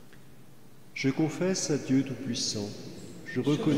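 A man speaks slowly and solemnly through a microphone in a large echoing hall.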